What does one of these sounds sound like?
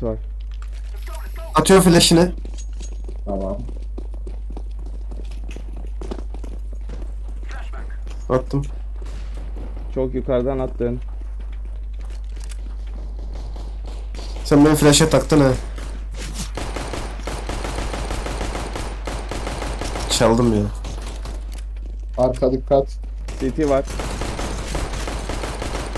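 Footsteps run over hard pavement.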